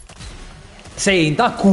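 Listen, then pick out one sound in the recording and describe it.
A young man speaks loudly and excitedly into a microphone.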